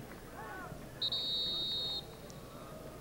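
A referee's whistle blows a long, steady blast.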